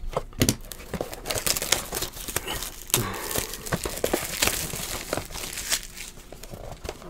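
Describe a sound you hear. Cellophane wrapping crinkles and tears as a box is opened.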